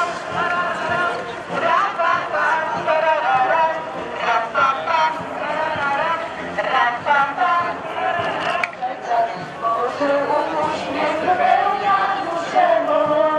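A crowd of men and women sing together outdoors.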